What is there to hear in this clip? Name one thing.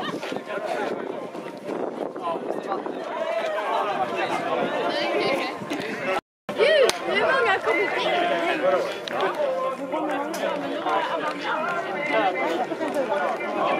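A crowd of men, women and children chatter nearby outdoors.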